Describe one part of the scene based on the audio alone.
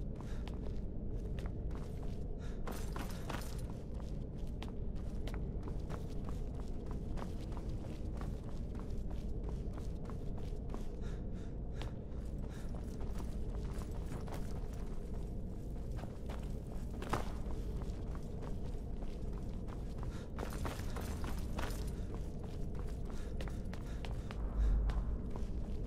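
Footsteps tread on stone in an echoing space.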